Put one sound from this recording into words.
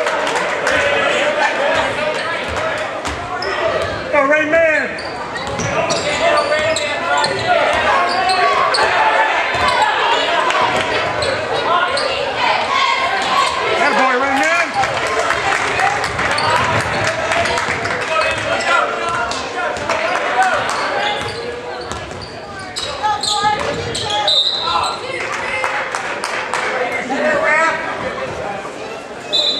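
A crowd cheers and shouts throughout in a large echoing gym.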